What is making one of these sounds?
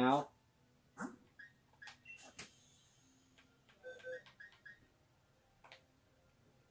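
Short electronic menu blips sound from a television.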